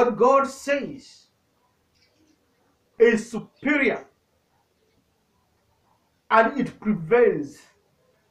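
A man speaks loudly and with emphasis into a microphone, in short bursts with pauses.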